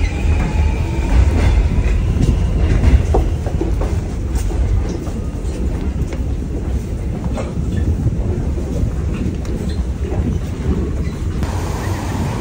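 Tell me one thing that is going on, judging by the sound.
Footsteps shuffle and tap on a hard floor in a crowded, echoing underground space.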